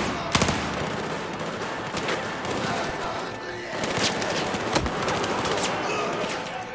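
Gunshots crack sharply, echoing in a large hall.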